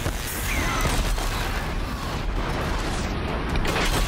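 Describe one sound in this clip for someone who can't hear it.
Metal sparks and impacts clatter in a fight.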